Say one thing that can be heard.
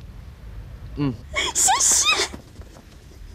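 A young woman laughs and speaks with relief.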